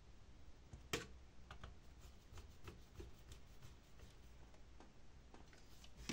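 A screwdriver turns and scrapes against a metal screw.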